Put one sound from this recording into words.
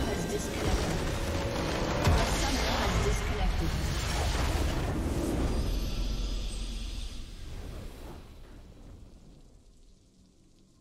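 A huge game explosion booms and rumbles, then slowly fades.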